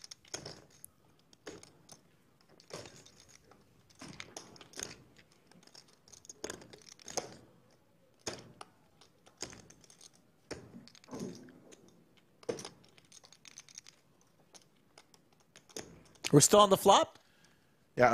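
Poker chips click and clatter as a man riffles them.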